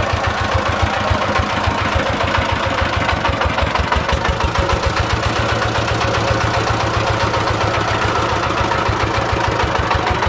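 A single-cylinder diesel engine chugs loudly and steadily at idle.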